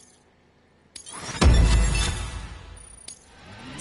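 A deep booming whoosh sounds as a game's rating badge lands.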